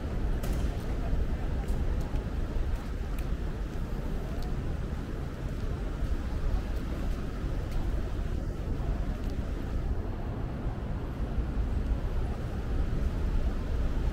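Traffic hums along a nearby road.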